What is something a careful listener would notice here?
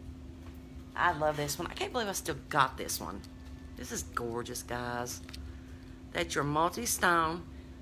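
A middle-aged woman talks with animation close to the microphone.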